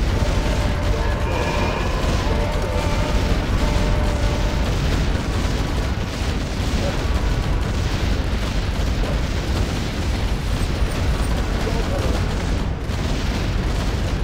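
Many spells and blasts crackle and boom in a dense, steady clatter of battle effects.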